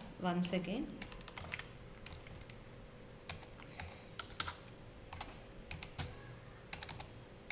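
A computer keyboard clicks as someone types in short bursts.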